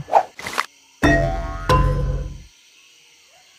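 Star chimes ring out as a score tallies up.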